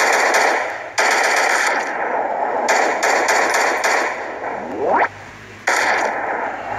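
A rifle fires loud, sharp shots that echo away.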